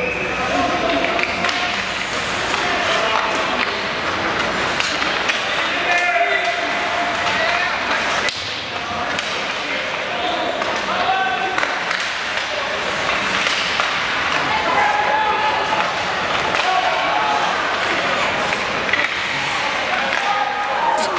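Spectators nearby chatter and call out.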